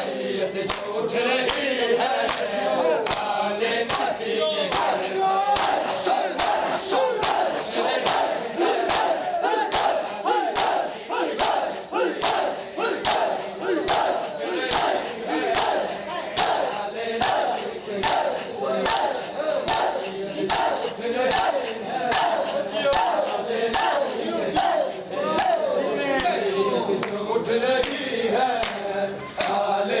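A crowd of men chants loudly together.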